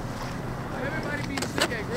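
A skateboard rolls over concrete.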